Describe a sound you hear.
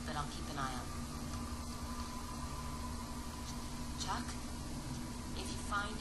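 A woman speaks calmly and quietly.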